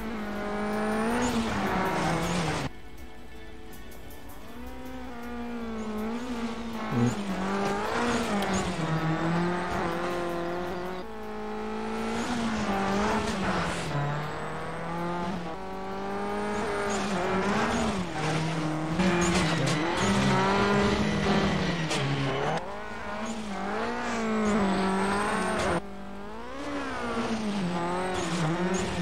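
A car engine revs hard, rising and falling in pitch.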